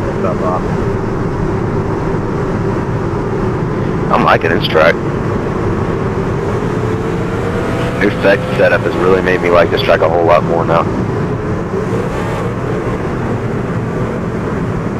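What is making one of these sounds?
Racing car engines drone steadily in the distance.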